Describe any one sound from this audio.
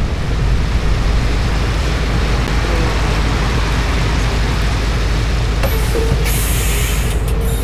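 Rain patters steadily on a bus windscreen.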